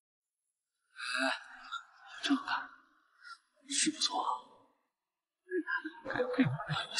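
A young man talks casually in an echoing hall.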